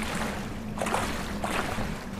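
Water splashes around wading legs.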